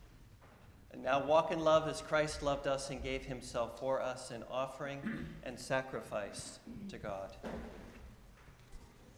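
An elderly man speaks calmly through a microphone in a large echoing room.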